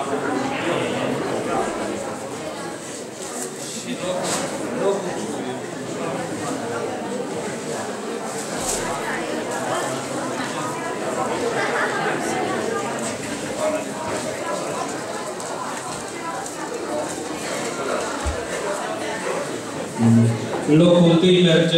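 An older man speaks into a microphone over loudspeakers, reading out in a hall.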